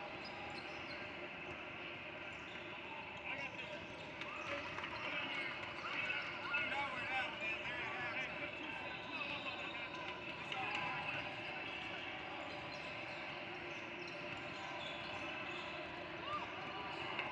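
A crowd of children and adults chatter in a large echoing hall.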